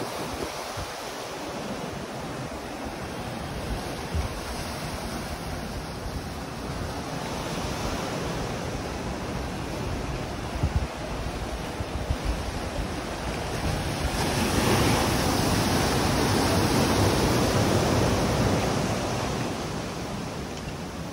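Waves crash against rocks below with a steady roar.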